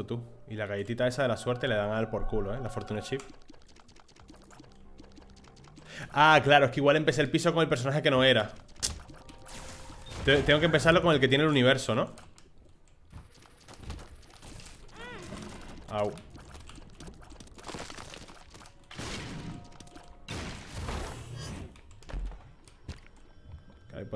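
Game sound effects pop and splatter.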